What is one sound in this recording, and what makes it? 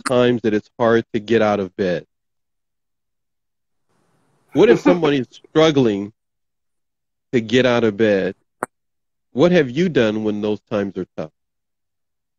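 A man speaks clearly and calmly into a close microphone.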